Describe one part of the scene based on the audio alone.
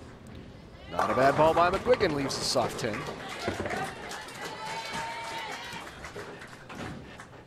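A crowd cheers and claps loudly.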